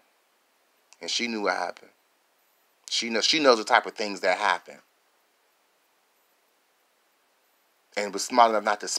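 A man speaks with animation close to a phone microphone, in short bursts.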